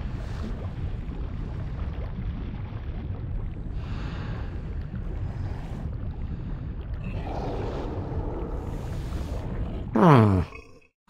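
Lava bubbles and rumbles low and steadily.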